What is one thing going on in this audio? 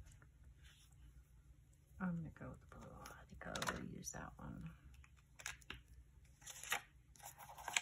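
A paper card rustles as hands lay it on a notebook page.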